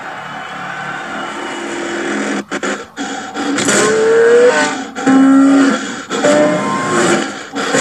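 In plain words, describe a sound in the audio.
A racing car engine revs up and down through a television speaker.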